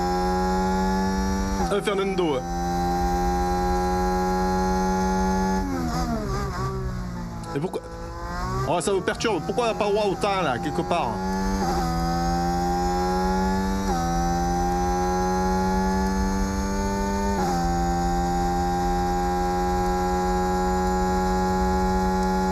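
A racing car engine whines loudly at high revs.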